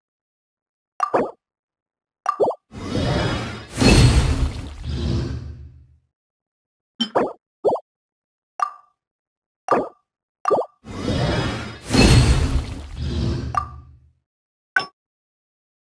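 Game menu chimes and clicks sound.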